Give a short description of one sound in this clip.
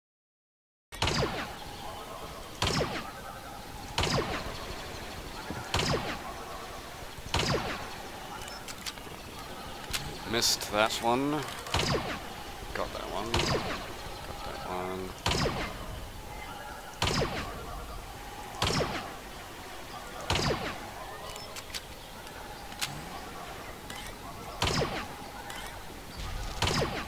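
A laser rifle fires sharp shots again and again at a steady pace.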